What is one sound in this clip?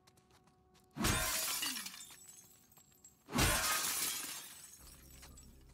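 A glass fridge door rattles open and shut.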